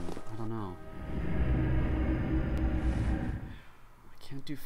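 A shimmering magical whoosh swells and then fades.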